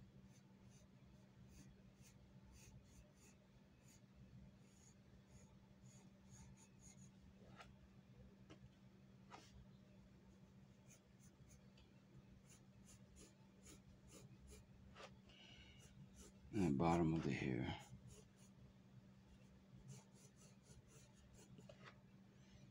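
A pencil scratches and sketches softly on paper.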